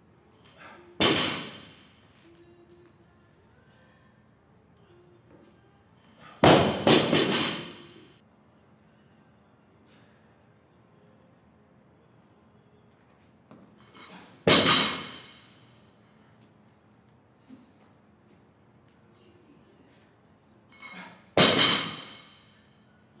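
A heavy barbell thuds down onto the floor with a ringing clank, echoing in a large room.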